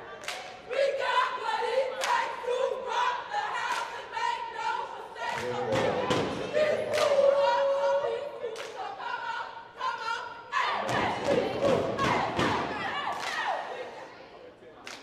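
A crowd of spectators cheers and shouts from the stands.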